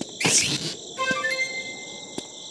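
Short electronic chimes ring out.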